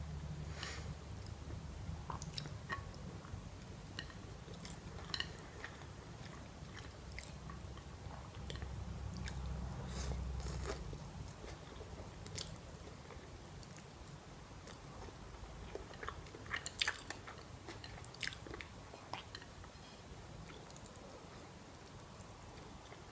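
A young woman chews with wet mouth sounds up close.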